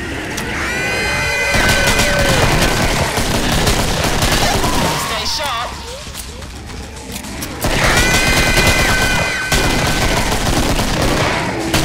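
Monsters screech and growl.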